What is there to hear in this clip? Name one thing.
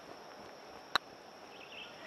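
A putter taps a ball softly.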